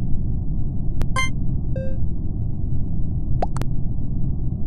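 Short electronic blips sound as votes are cast.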